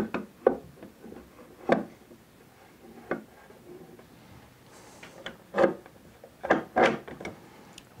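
Clamps click and knock against wood.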